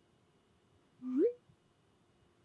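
A short two-note chat alert chimes, rising in pitch.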